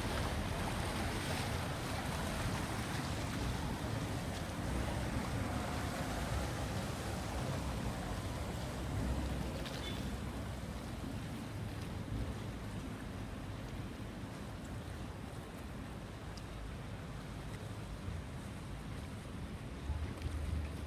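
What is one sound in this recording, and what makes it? Water splashes and churns against a moving hull.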